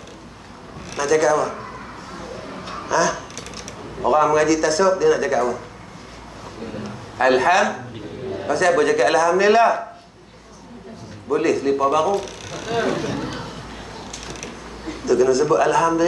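A man speaks calmly through a clip-on microphone, pausing between phrases.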